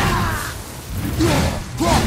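A loud burst of sparks explodes with a crackling roar.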